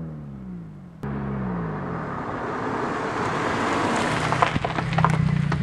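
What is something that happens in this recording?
A car engine grows louder as a car approaches and passes close by.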